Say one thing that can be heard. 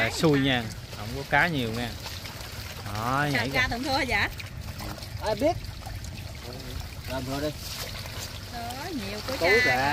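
Fish splash and flap in shallow water.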